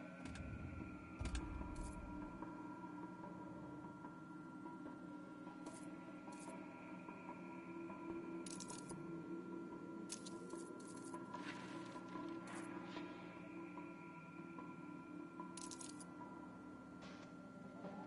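Short electronic menu clicks sound as selections change.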